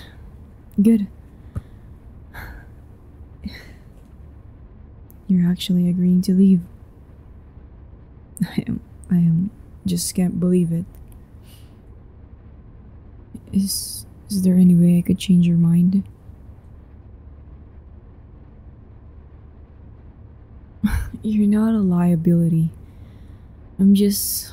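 A young woman speaks slowly and calmly, close to a microphone, with long pauses.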